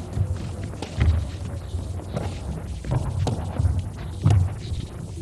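A ball smacks into hands and is thrown again and again in a large echoing hall.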